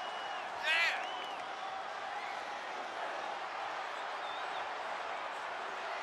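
A large crowd cheers steadily in an echoing arena.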